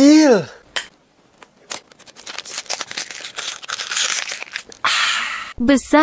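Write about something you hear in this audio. A man gulps water from a bottle.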